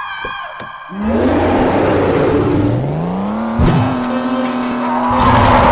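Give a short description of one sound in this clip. A car engine revs up and accelerates.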